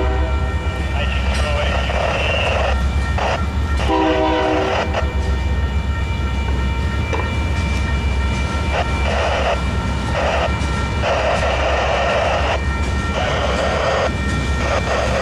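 Train wheels squeal and clatter on the rails.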